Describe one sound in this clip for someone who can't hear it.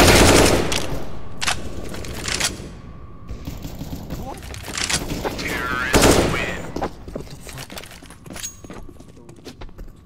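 Rifle shots crack in quick bursts.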